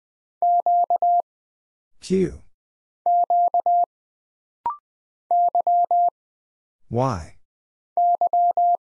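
Morse code beeps sound in quick bursts of short and long tones.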